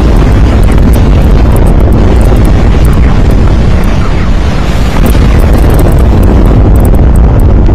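A fiery explosion roars.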